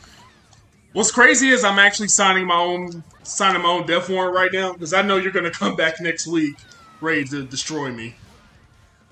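A young man talks loudly and excitedly into a microphone.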